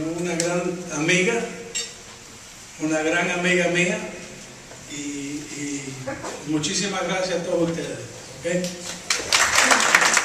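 A man speaks steadily through a microphone and loudspeakers.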